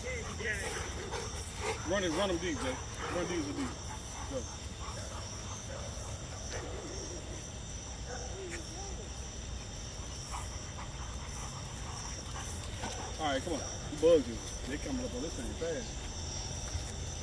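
Dogs whine and yelp close by.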